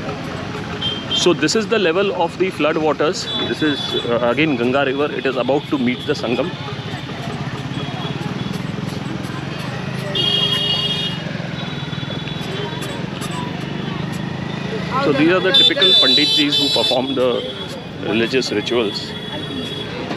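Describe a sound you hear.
Men and women chat in a busy crowd outdoors.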